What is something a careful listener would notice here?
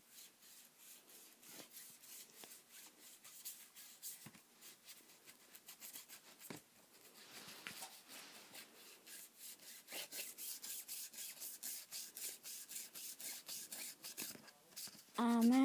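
A marker pen rubs and scratches lightly across a page.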